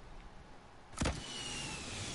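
A gun fires a single loud shot.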